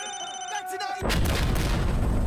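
A loud blast roars and rumbles on.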